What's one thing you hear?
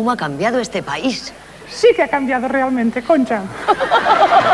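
A woman speaks with animation through a loudspeaker.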